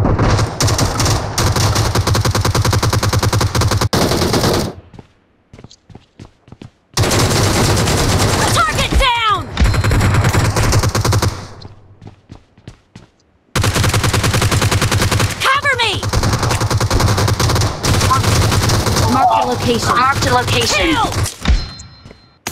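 Rapid automatic gunfire rattles in quick bursts.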